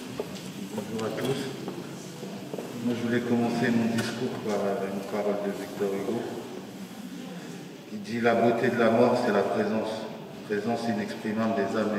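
A man reads out aloud through a microphone.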